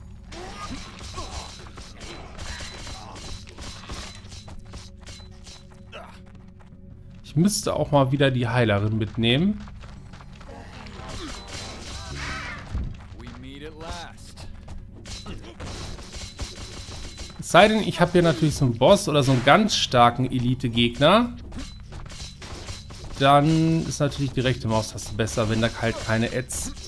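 Weapons strike with sharp hits.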